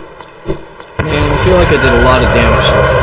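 A huge creature lets out a loud, wavering roar.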